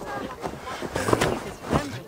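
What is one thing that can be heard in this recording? A body tumbles onto the ground with a thud.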